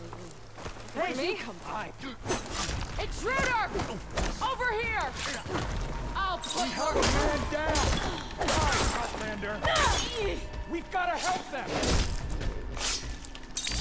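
Mechanical creatures screech with rising and falling cries.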